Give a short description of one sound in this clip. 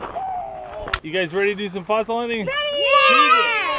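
Young children call out excitedly outdoors.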